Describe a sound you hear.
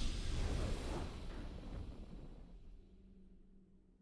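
A triumphant game fanfare rings out and fades away.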